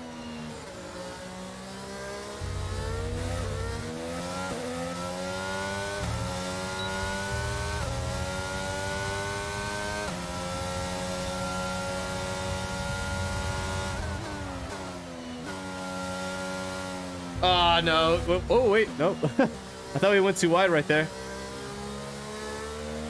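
A racing car engine whines, rising in pitch and dropping with each gear change.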